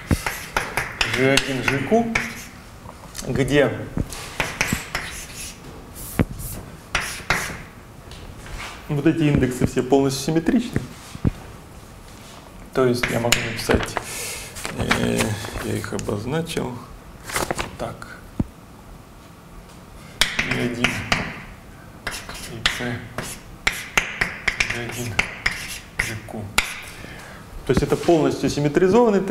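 A young man lectures calmly.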